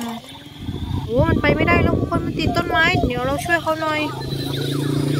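A toy plays loud warbling electronic sound effects.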